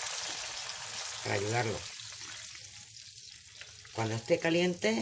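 Oil sizzles loudly in a frying pan and gradually quiets down.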